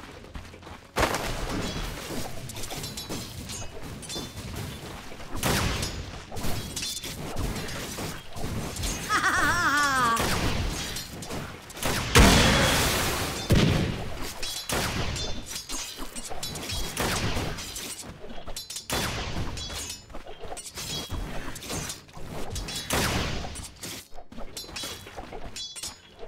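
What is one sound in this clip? Weapons clash and spells burst in a busy fight.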